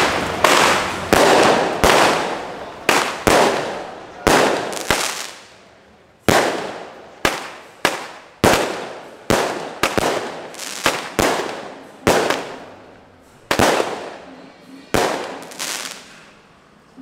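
Firecrackers explode in loud, irregular bangs nearby, outdoors.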